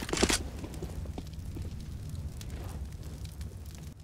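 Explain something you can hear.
An automatic rifle fires bursts.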